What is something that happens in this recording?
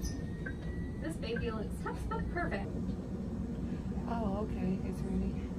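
A young woman speaks quietly and calmly nearby.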